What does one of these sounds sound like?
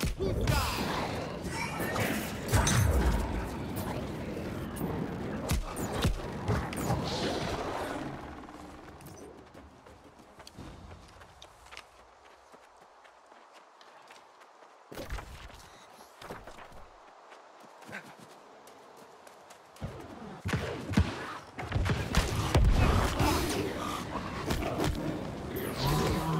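Swords clash and magic blasts crackle in a fight.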